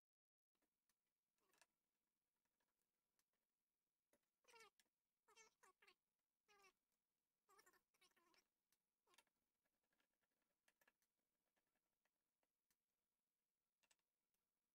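Hands tap and click on plastic and metal parts up close.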